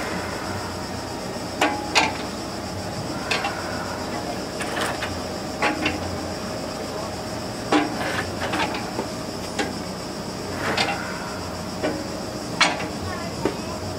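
An old stationary engine chugs and puffs steadily outdoors.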